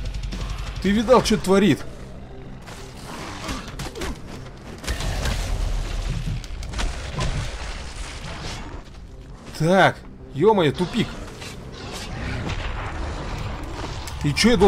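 Blades slash and thud in a fight.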